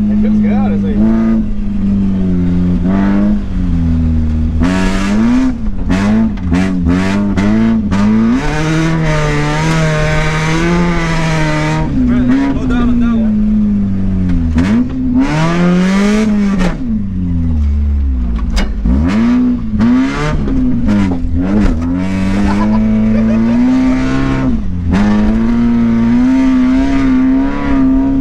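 A car engine roars loudly, revving up and down through the gears.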